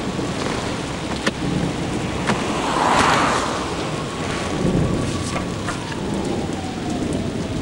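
A car engine hums steadily inside a tunnel.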